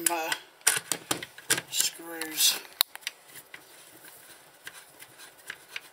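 A screwdriver turns a screw with small metallic clicks.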